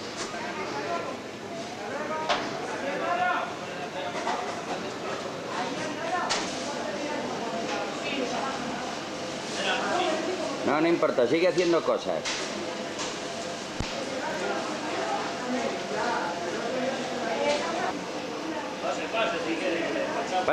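A crowd of people chatters throughout a busy indoor market hall.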